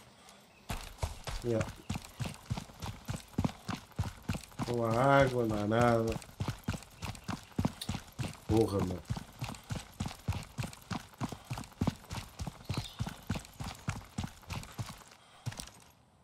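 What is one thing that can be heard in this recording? Footsteps tread steadily and quickly on pavement.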